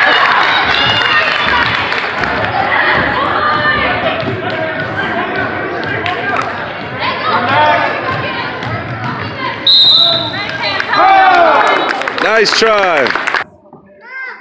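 Spectators chatter and call out in the echoing hall.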